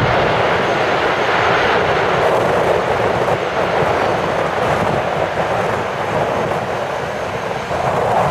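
A jet plane's engines roar loudly as it rolls down a runway.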